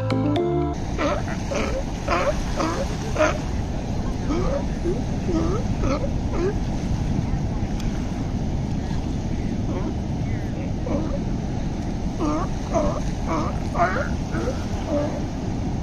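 Small waves lap gently on the shore.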